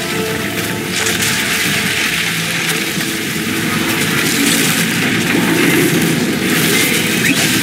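Snow and ice crash down in a deep, growing rumble.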